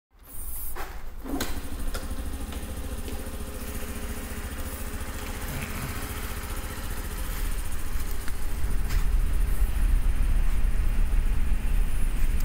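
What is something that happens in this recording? A small motorcycle engine idles with a steady low putter.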